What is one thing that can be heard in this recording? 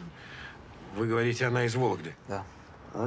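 An older man speaks in a low voice.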